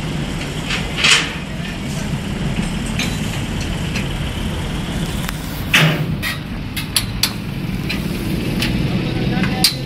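A diesel wheel loader idles outdoors.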